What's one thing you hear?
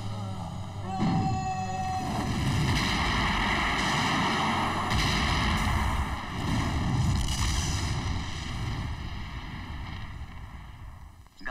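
An explosion roars and fire crackles loudly.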